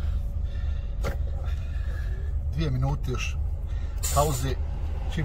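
A truck engine hums low inside the cab while driving.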